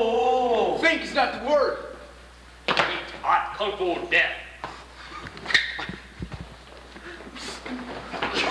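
Teenage boys shout and laugh excitedly close by.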